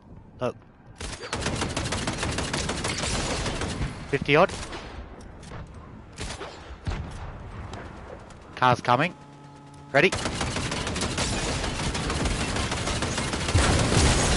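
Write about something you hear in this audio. A mounted gun fires in rapid bursts.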